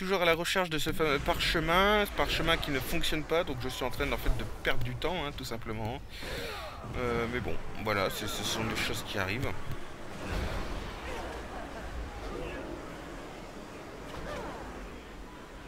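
Magic spells whoosh and crackle in a fight.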